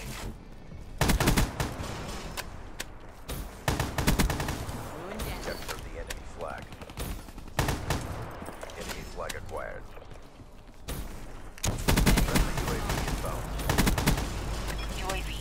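Automatic gunfire rattles in short, rapid bursts.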